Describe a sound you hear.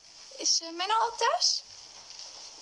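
A woman asks a question calmly, close by.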